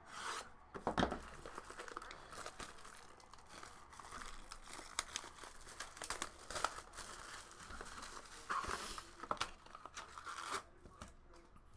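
Plastic wrap crinkles as hands tear it off a box.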